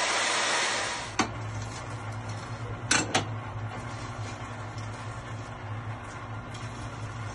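A drill motor hums low after the cutting stops.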